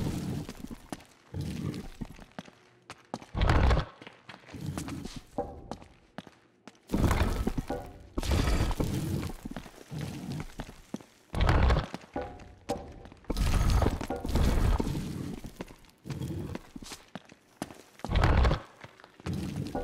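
Footsteps scuff on a stone floor.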